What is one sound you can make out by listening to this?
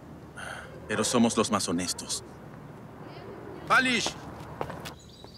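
A young man speaks in short bursts.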